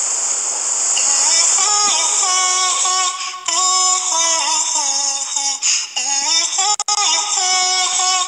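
A young girl sings a melody close by.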